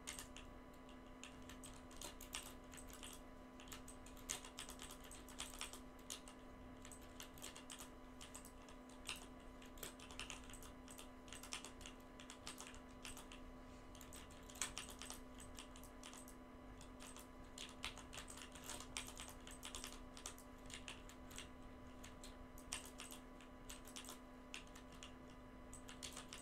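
Game building pieces snap into place with quick clicks and thuds.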